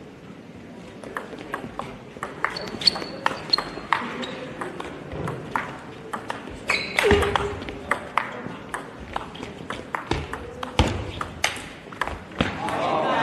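A table tennis ball clicks back and forth off bats and the table in a quick rally.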